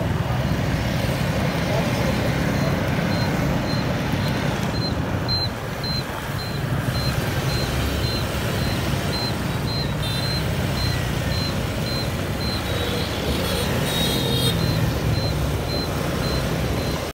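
Motorbike engines rumble and buzz past on a busy road outdoors.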